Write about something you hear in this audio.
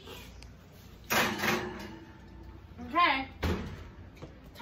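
An oven door opens and shuts with a clunk.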